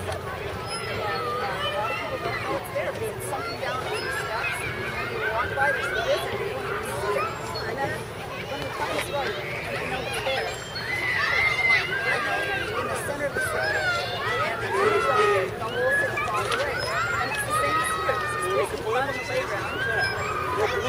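An elderly woman speaks with animation to a group outdoors.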